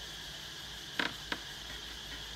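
A hand knocks twice against something hanging.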